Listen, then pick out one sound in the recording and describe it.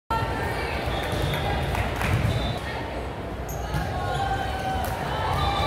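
A crowd of people chatters in a large echoing gym.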